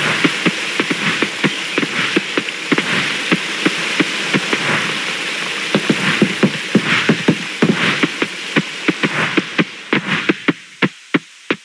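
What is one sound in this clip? Footsteps patter quickly over grass and wooden planks.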